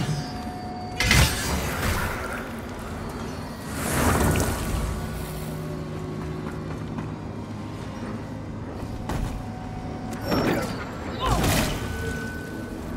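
A magical blast crackles and whooshes.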